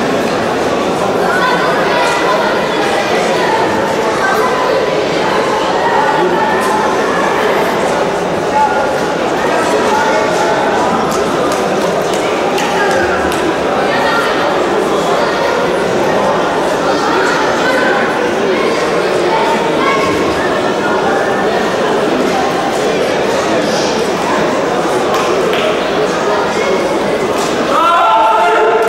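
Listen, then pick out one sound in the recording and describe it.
A large crowd chatters loudly, echoing through a big hall.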